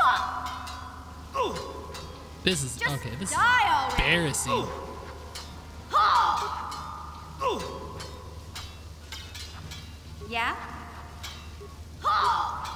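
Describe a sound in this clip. Laser swords swing with sweeping electric hums and clash with sharp crackles.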